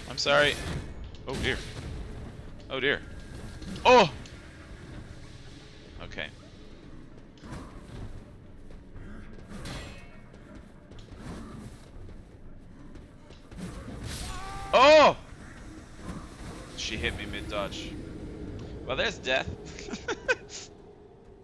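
Game creatures roar and grunt.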